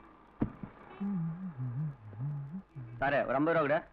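A man speaks in a low voice.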